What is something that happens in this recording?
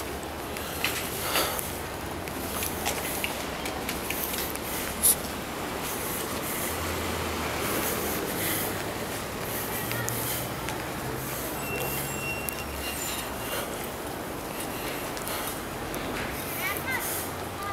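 Footsteps crunch on snow at a steady pace.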